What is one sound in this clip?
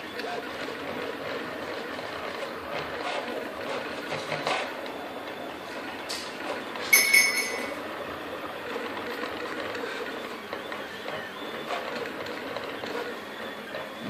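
A 3D printer's motors whir and buzz steadily as the print head moves back and forth.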